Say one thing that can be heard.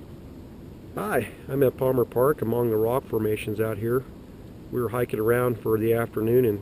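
A middle-aged man talks calmly close to the microphone, outdoors.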